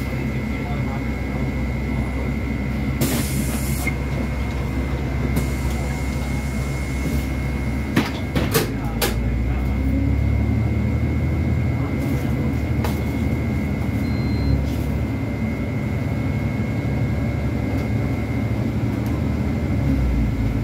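A bus engine rumbles steadily from inside the cab.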